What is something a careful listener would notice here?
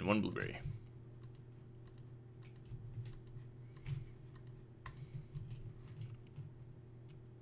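Soft game sound effects click and tick.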